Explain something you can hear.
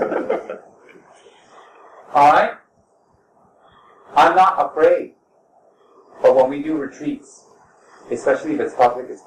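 A man speaks slowly and calmly in short phrases, close to a microphone.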